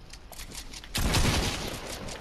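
A gun fires a loud shot nearby.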